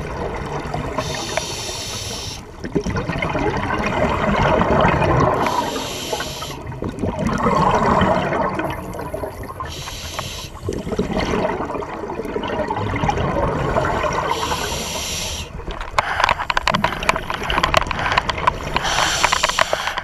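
A scuba diver inhales through a regulator underwater.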